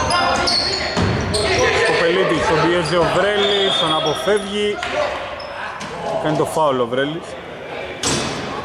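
Men shout and call out loudly across an echoing hall.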